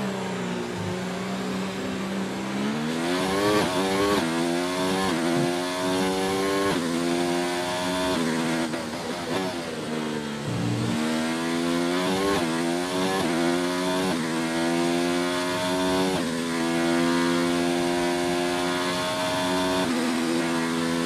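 A racing car engine whines loudly, revving up and shifting through gears again and again.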